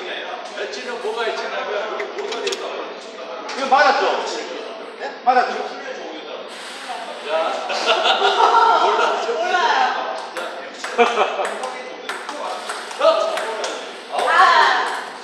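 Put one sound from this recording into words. A table tennis ball clicks against paddles and a table in quick rallies.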